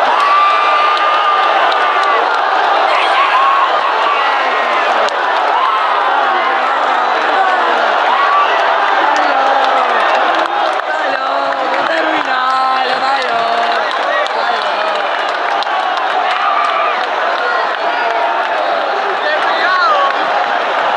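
A huge crowd of men sings and chants loudly in an open-air stadium.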